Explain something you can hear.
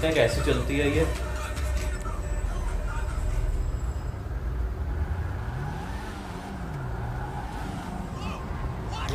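A car engine hums and revs as the car speeds up.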